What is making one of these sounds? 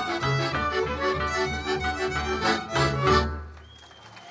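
Lively folk music plays loudly over loudspeakers and stops abruptly.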